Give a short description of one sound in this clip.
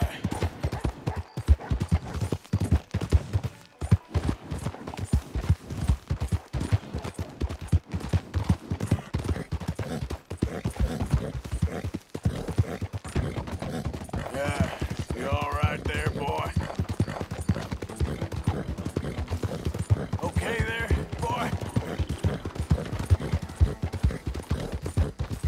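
Horse hooves clop rapidly on the ground.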